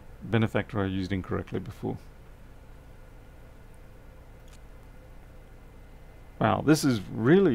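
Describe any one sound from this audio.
A man talks calmly and close to a microphone.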